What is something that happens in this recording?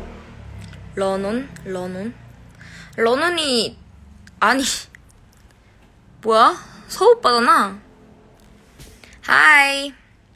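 A young woman speaks close to a phone microphone in short, lively bursts.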